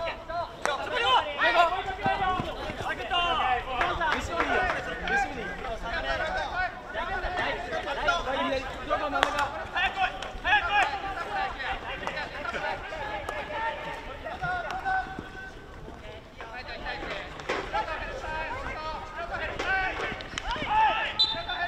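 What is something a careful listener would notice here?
Hockey sticks strike a ball with sharp cracks.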